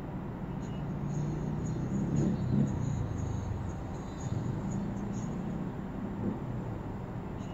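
A motor scooter rides past close by.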